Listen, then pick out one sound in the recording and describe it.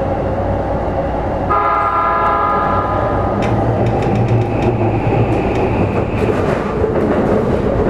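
Train wheels rumble and click over the rail joints.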